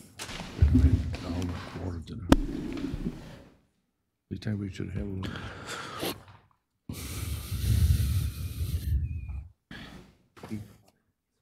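A man speaks through a microphone in a large room, pausing between phrases.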